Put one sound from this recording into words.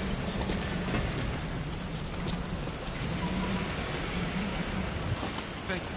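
Boots thud on a metal deck as a man runs.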